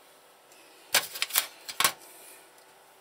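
A metal casing clanks as it is handled.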